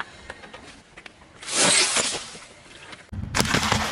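A plastic bag bursts under a car tyre.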